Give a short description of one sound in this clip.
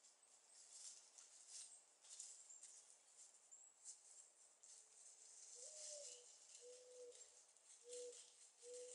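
Wild turkeys rustle through dry leaves as they walk.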